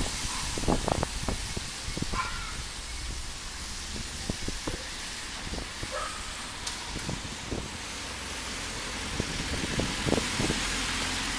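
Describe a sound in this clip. A car engine hums steadily while driving along a street.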